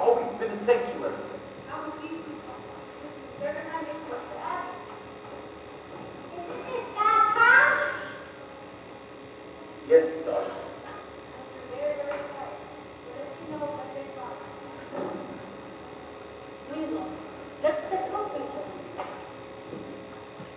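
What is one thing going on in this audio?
A man speaks loudly on a stage, heard from a distance.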